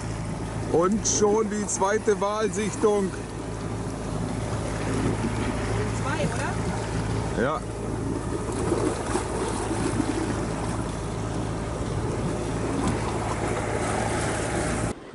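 Choppy sea water splashes steadily in a breeze outdoors.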